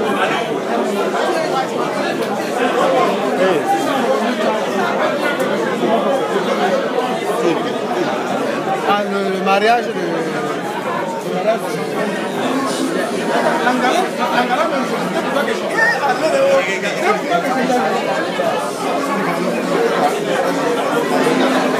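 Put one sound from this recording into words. A crowd of men and women chatter loudly all around.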